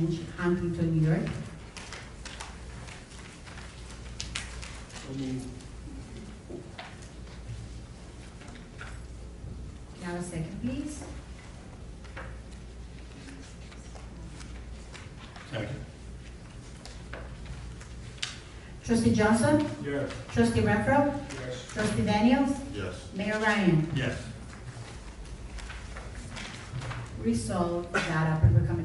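A man speaks calmly into a microphone in a large room, with pauses.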